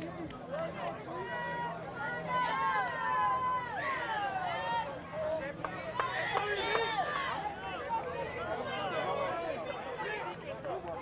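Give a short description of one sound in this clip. Young men on the sideline cheer and yell loudly.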